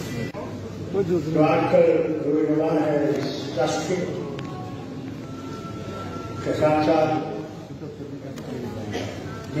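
An elderly man speaks into a microphone through loudspeakers, in a large echoing hall.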